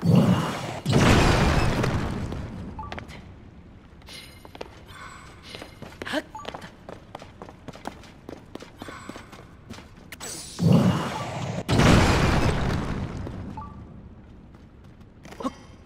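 Rocks crash and crumble apart.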